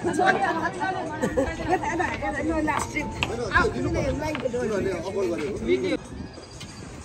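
A group of women and men talk and laugh cheerfully close by.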